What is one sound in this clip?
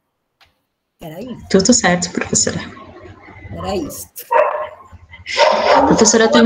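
A younger woman speaks with animation over an online call.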